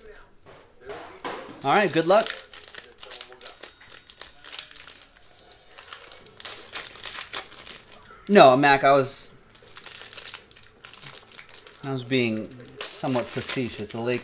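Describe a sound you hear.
Foil card packs crinkle and tear as they are opened.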